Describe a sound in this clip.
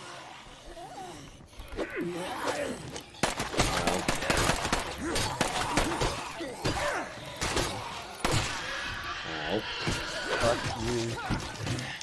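Zombies snarl and growl close by.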